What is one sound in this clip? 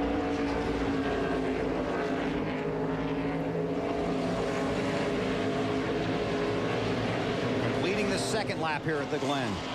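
A pack of race car engines roars loudly at high revs.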